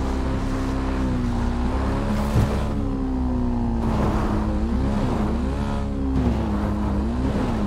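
A motorbike engine revs and hums steadily, rising and falling in pitch.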